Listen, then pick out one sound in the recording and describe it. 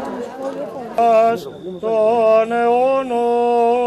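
A man chants in a deep, steady voice.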